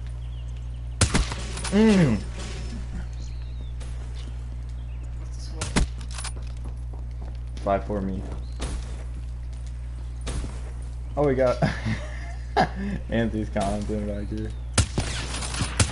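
Gunshots crack from a video game.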